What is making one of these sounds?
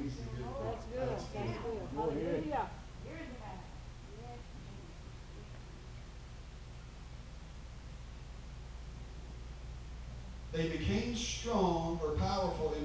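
A man speaks calmly through a microphone in a room with echo.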